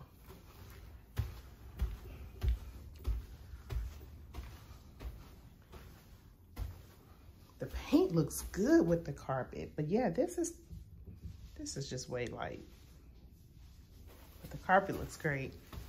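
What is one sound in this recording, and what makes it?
Footsteps thud on carpeted stairs.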